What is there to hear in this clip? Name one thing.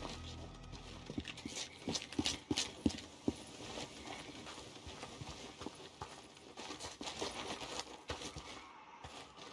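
Footsteps crunch and rustle through dry grass.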